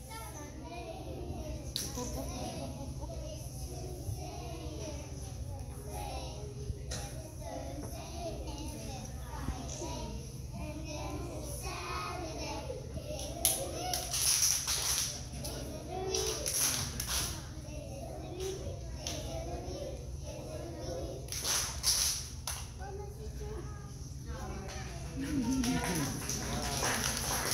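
Young children sing together in an echoing hall.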